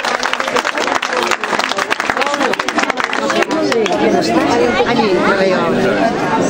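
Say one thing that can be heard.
A crowd of men and women chatters and cheers loudly outdoors.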